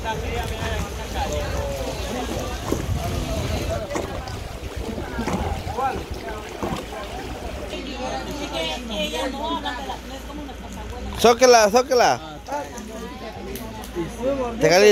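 Water splashes softly around people wading.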